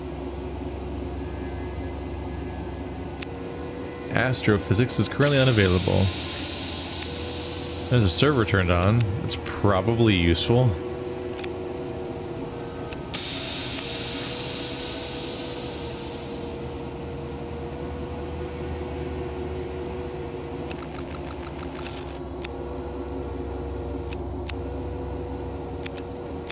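Equipment hums steadily.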